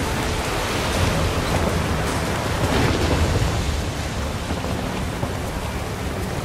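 Strong wind roars across open water.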